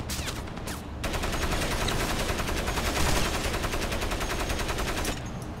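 A mounted machine gun fires in a rapid burst.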